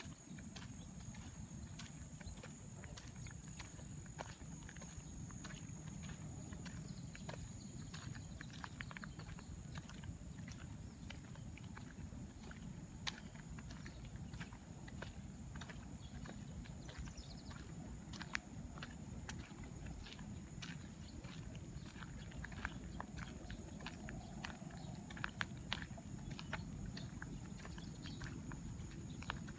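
Footsteps crunch slowly on a gravel road.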